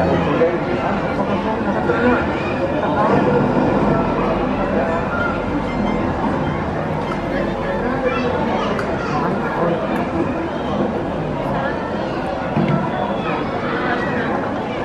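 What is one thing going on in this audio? A crowd of people chatter outdoors at a distance.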